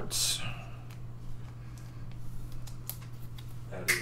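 A plastic card sleeve crinkles and rustles in hands.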